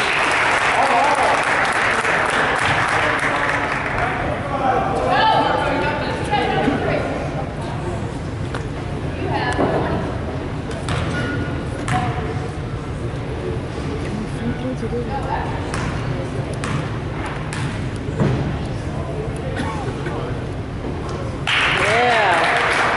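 Spectators talk nearby.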